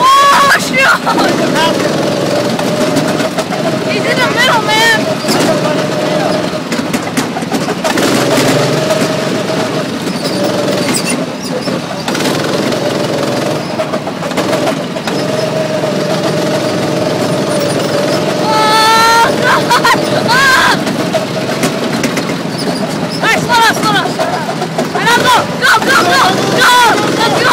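A go-kart engine drones steadily up close.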